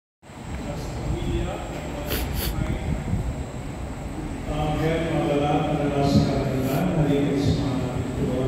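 A man speaks steadily in a large echoing hall.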